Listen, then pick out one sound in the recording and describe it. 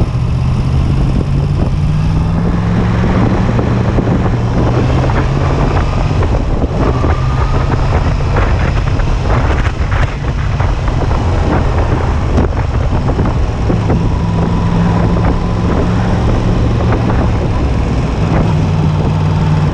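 A motorcycle engine hums steadily up close while riding.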